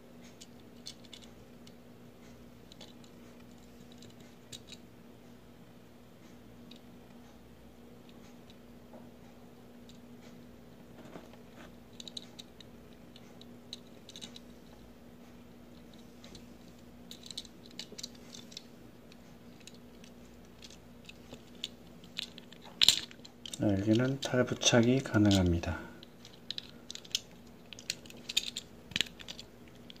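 Fingers tap and click softly against a small plastic toy car.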